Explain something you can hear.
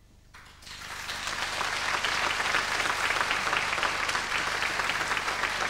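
A large crowd claps loudly, swelling in quickly.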